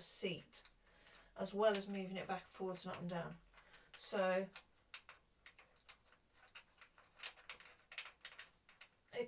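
A bicycle saddle clicks and rattles as it is adjusted.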